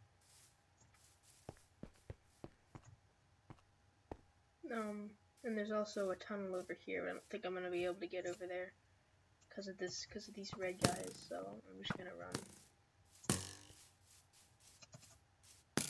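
Footsteps thud softly on grass and stone.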